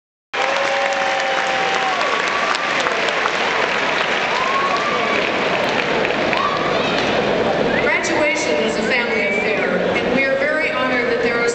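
A large crowd murmurs and cheers in the background.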